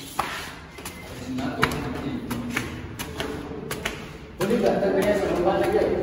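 Footsteps scuff and tap on concrete stairs.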